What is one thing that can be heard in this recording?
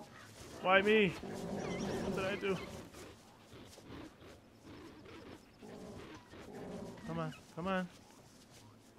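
Herd animals low and bellow in deep, drawn-out calls.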